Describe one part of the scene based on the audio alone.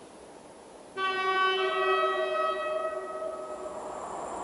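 An electric locomotive sounds a loud two-tone horn in the distance.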